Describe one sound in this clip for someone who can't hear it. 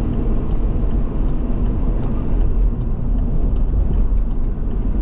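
A car's engine drones steadily, heard from inside the car.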